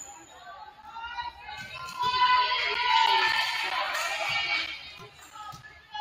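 Young players shout and call out loudly in a large echoing gym.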